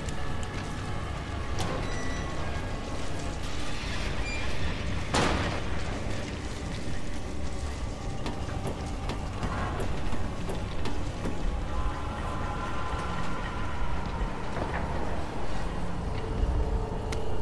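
Footsteps clank on metal grating.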